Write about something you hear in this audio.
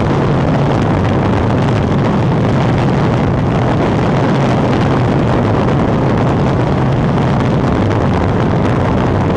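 Strong wind roars and buffets loudly during a fast free fall.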